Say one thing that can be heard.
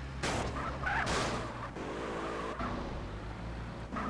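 Car tyres squeal briefly through a sharp turn.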